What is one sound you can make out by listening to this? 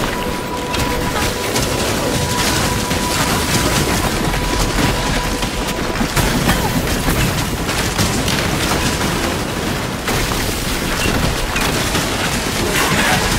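Spells crackle and explode in rapid bursts.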